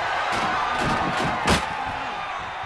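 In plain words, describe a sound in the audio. A heavy wooden table is struck with a loud thud.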